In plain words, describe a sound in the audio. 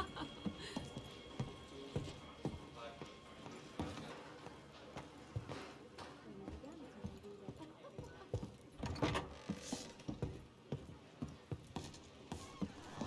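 Boots thud in steady footsteps on a wooden floor.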